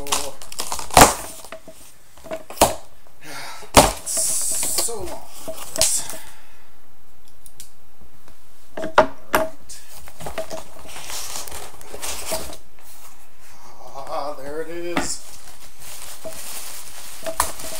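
Sharp knocks and thumps sound on cardboard.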